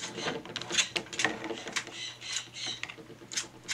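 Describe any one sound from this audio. A parrot's beak clicks against plastic.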